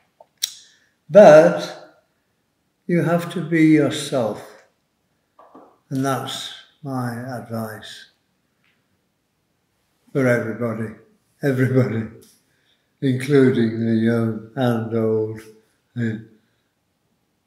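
An elderly man speaks calmly and warmly, close by, in short phrases.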